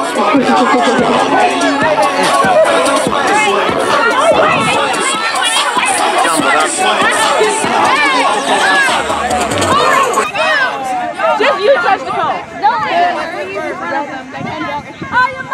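A crowd of young people chatters and shouts outdoors close by.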